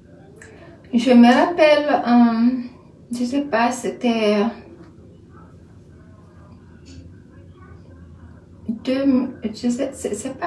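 A woman speaks with animation close to a microphone, in bursts with pauses.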